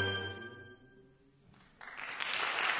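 An orchestra's last chord rings out and fades in a large echoing hall.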